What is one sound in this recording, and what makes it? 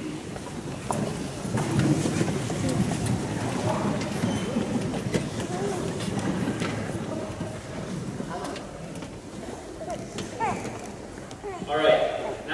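A piano plays softly in a large echoing hall.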